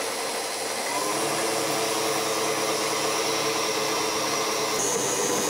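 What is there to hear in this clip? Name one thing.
An electric stand mixer whirs steadily as its dough hook turns.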